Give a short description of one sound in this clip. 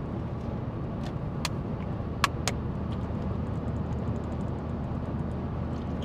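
A young man drinks water from a plastic bottle, crinkling it.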